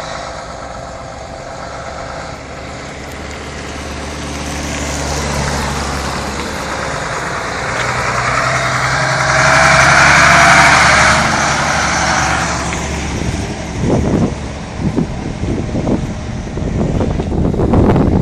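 A heavy truck engine rumbles closer, roars past and fades away.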